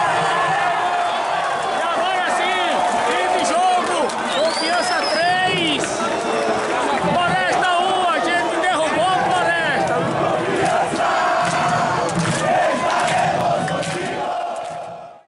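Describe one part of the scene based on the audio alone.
A large crowd of fans chants and sings loudly in an open stadium.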